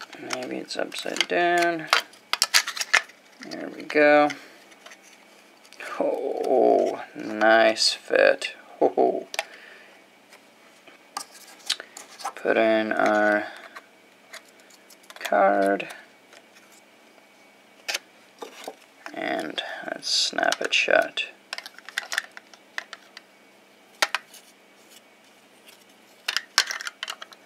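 Plastic parts click and tap.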